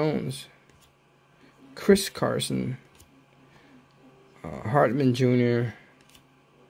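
Trading cards slide and rustle against each other in a hand.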